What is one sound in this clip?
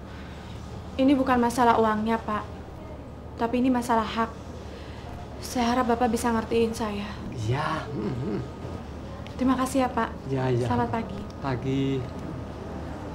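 A young woman speaks with animation, close by.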